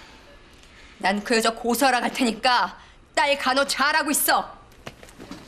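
A middle-aged woman speaks urgently and with emotion close by.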